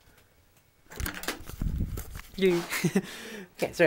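A young man laughs close to the microphone.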